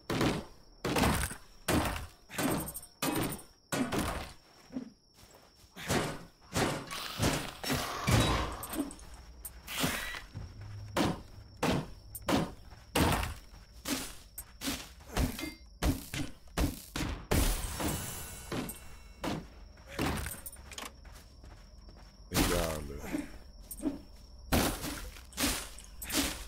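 A game character strikes objects with sharp, repeated thuds.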